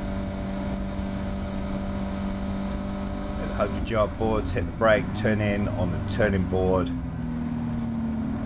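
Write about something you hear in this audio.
A race car engine hums steadily up close.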